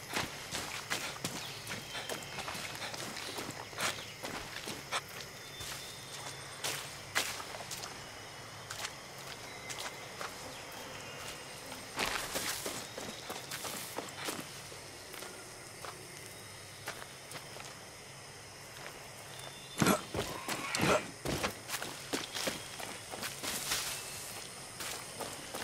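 Footsteps crunch steadily over dirt and through rustling undergrowth.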